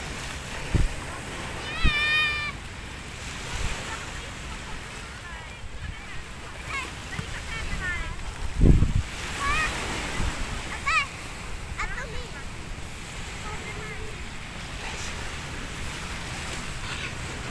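Small waves wash gently onto a shore outdoors.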